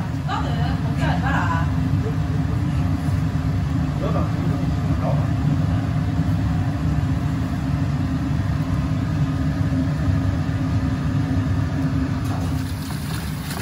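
Water boils and bubbles steadily.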